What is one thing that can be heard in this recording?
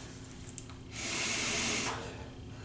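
A man blows a long breath into a mask.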